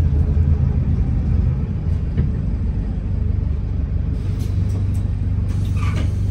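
A bus engine rumbles low and steady from inside the moving bus.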